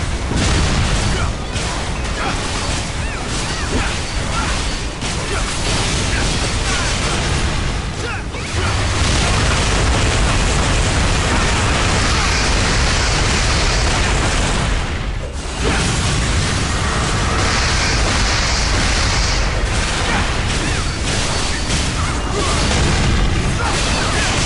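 Swords clash and magic blasts boom in a fast game battle.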